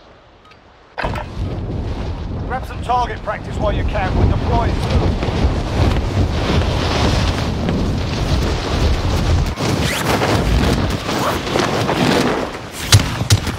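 Wind rushes loudly past during a fall through the air.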